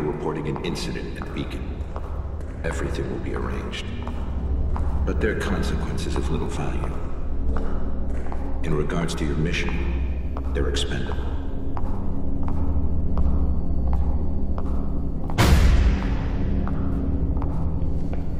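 Footsteps echo on a hard floor in a long corridor.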